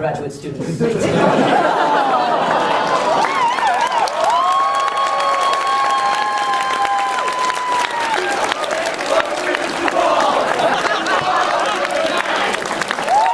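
A crowd of young people cheers and shouts loudly.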